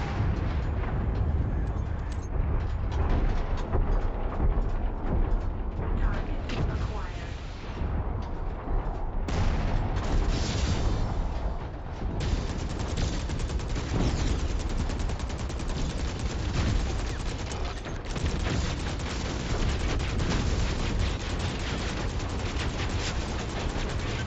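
A low engine rumble drones.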